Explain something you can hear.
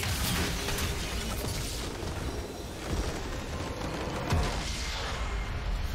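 Game spell effects crash and roar in a busy battle.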